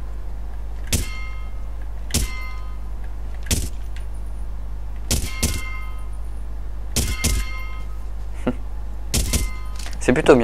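A gun fires single shots at intervals.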